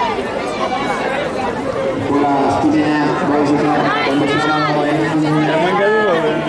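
A crowd of spectators cheers and shouts nearby, outdoors.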